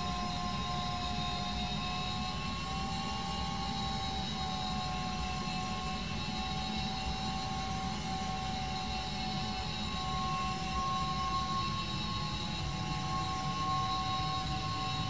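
Jet engines roar steadily nearby.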